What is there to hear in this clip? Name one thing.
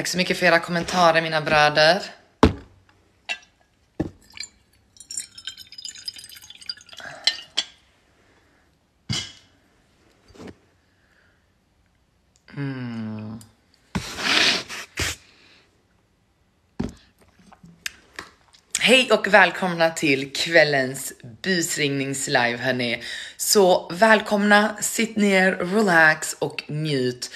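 A young woman speaks close by in a lively way.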